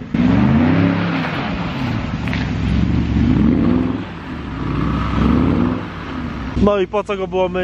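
A car engine revs loudly as the tyres spin on snow.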